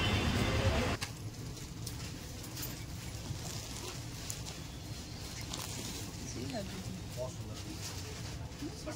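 Fabric rustles as it is unfolded and draped.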